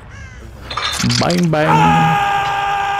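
A man screams in pain.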